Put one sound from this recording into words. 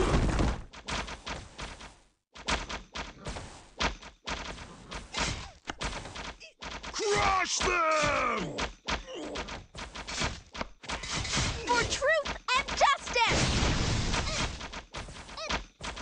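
Arrows whoosh through the air.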